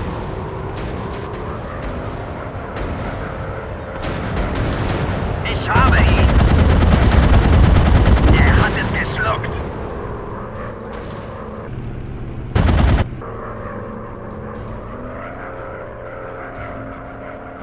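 A propeller engine drones steadily throughout.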